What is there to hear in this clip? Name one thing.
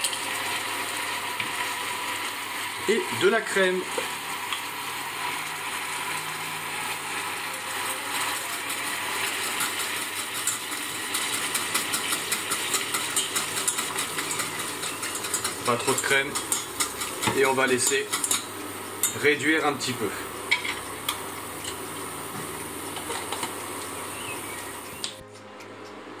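A sauce simmers and bubbles softly in a pan.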